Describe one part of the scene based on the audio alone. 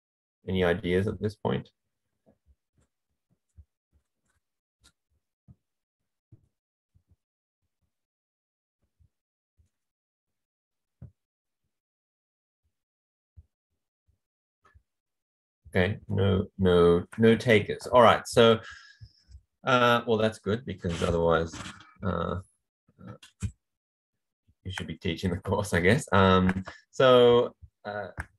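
A man speaks calmly into a microphone, explaining at an even pace, with long pauses.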